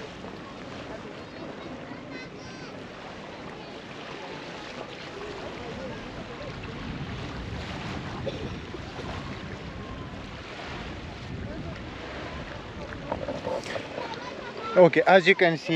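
Soft waves lap on the shore outdoors in a light wind.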